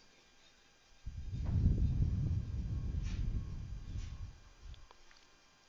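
A middle-aged woman exhales slowly and deeply, close to a microphone.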